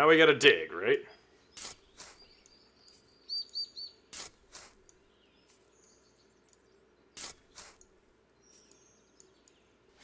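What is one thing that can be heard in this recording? A shovel digs into soil with sharp scraping thuds.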